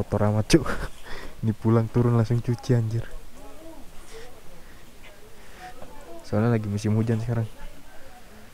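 A man talks close to the microphone with animation.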